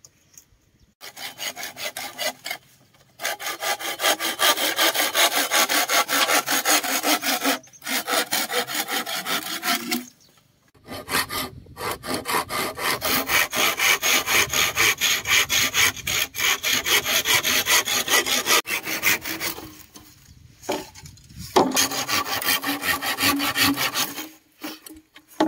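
A hand saw cuts back and forth through bamboo in quick, steady strokes.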